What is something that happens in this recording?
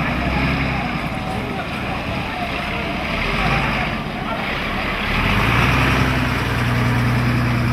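A fire engine's diesel engine rumbles as it drives past close by.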